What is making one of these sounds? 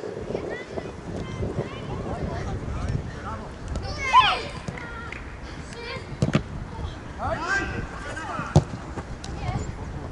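Young boys shout to each other outdoors.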